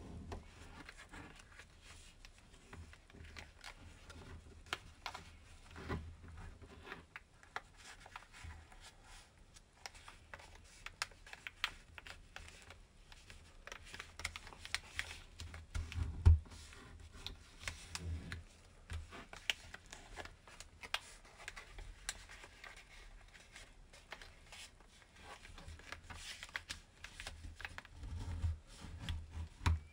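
Paper crinkles and rustles softly as hands fold it close by.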